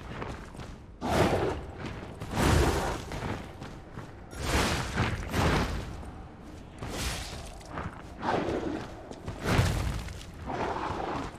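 Heavy blows thud and crash in repeated bursts.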